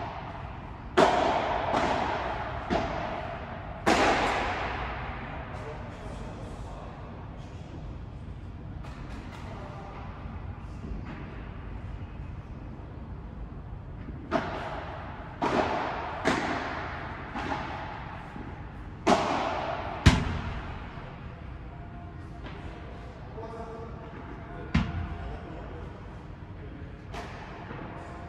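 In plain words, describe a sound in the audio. Paddle rackets strike a ball with sharp pops that echo in a large hall.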